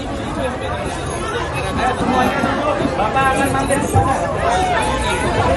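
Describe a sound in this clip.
A dense crowd of men and women chatters and calls out excitedly all around, close by.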